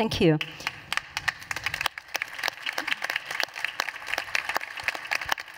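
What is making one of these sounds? People applaud in a large hall.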